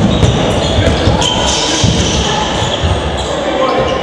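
A handball bounces on a hard court floor.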